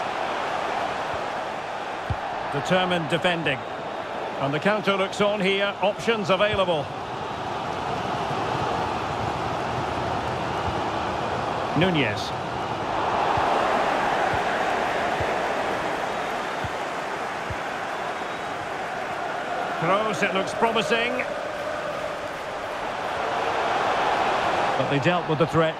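A large stadium crowd cheers and murmurs steadily.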